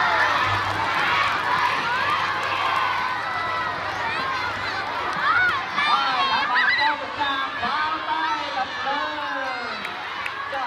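A large crowd of children chatters and shouts nearby, outdoors.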